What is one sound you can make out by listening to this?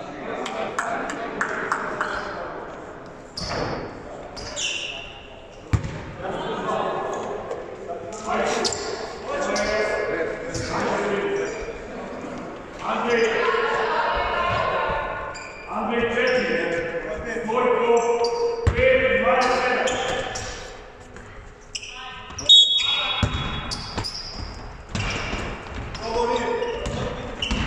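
Young men talk and call out nearby in a large echoing hall.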